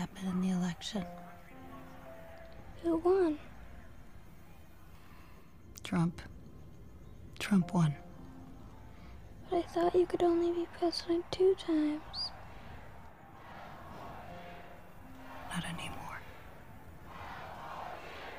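A woman speaks softly and gently up close.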